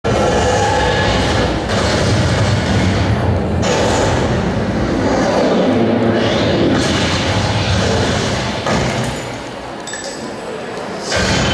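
A film soundtrack plays loudly through loudspeakers in a large echoing hall.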